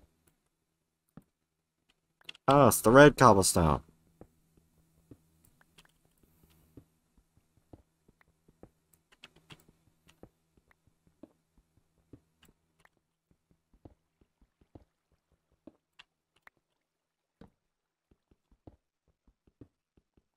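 Footsteps tap softly and steadily on stone.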